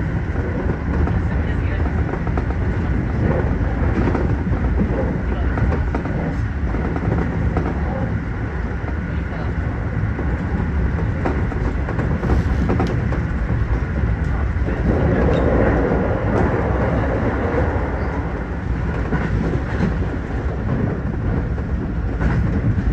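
A train rumbles steadily along the tracks, heard from inside the cab.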